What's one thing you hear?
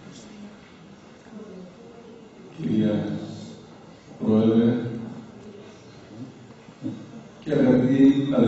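An elderly man speaks slowly and solemnly into a microphone.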